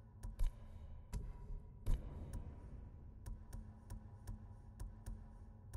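Short interface clicks tick as menu options are selected.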